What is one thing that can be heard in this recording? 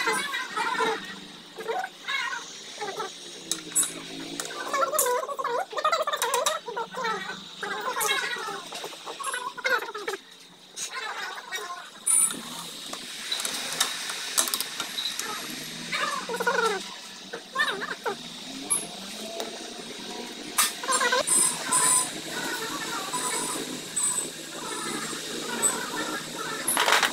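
Metal tools click and clink against a motorcycle engine.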